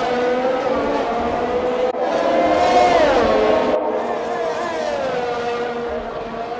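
A racing car engine whines loudly at high revs, its pitch dropping as it slows and shifts down.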